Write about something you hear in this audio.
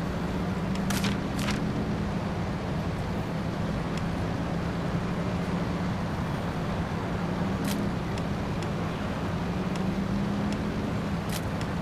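Menu buttons click softly.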